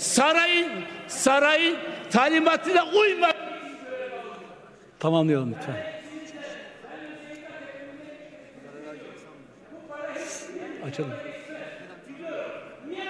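A middle-aged man shouts forcefully into a microphone in a large echoing hall.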